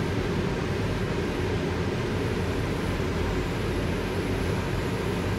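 A high-speed electric train rumbles past at speed on the tracks.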